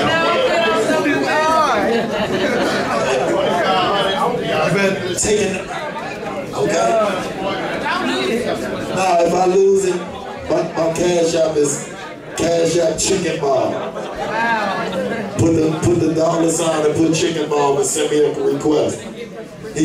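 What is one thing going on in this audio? A crowd of young men murmurs and cheers.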